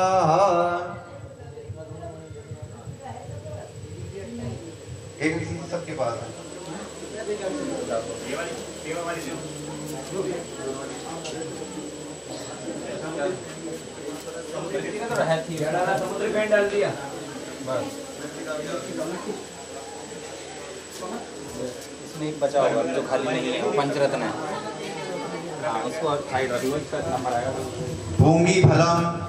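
A man chants in a steady voice nearby.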